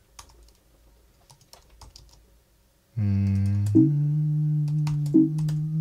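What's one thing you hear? Keys clack on a computer keyboard in quick bursts.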